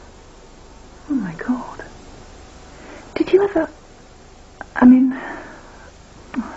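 An older woman answers in a serious voice.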